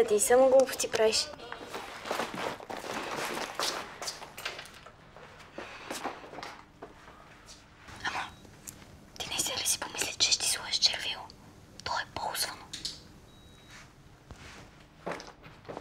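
A girl speaks playfully and then insistently, close by.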